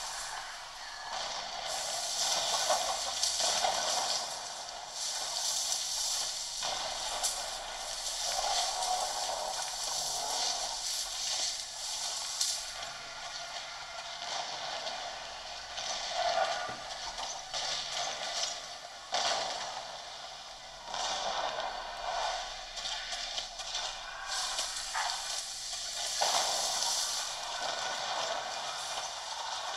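Game music and effects play from small built-in speakers.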